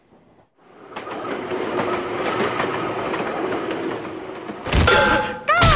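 A train rushes past with a steady rumble.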